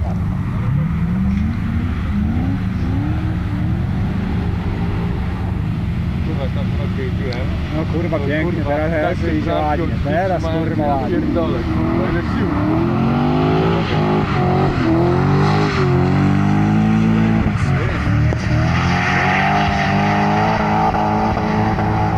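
A car engine revs hard and roars, rising and falling throughout.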